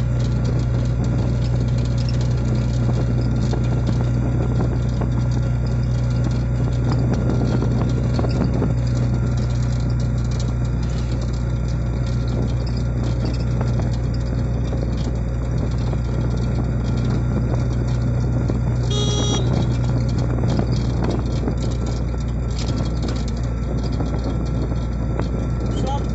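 An engine hums steadily and loudly as a small vehicle drives along a road.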